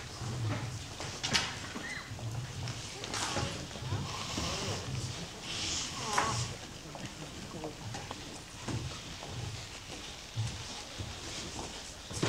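A young woman speaks into a microphone through loudspeakers.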